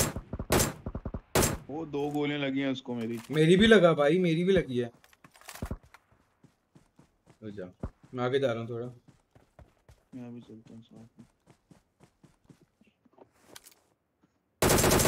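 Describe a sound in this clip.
Rifle shots crack sharply a few times.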